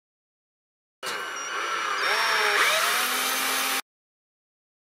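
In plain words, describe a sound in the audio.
A cordless drill whirs as it drives a bolt.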